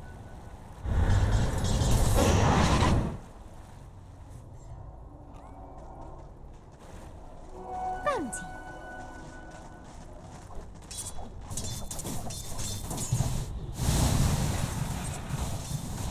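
Magic spells burst and crackle loudly in a game battle.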